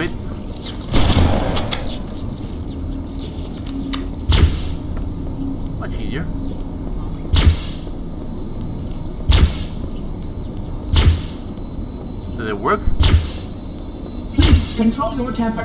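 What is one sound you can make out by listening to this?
An energy weapon fires single sharp shots.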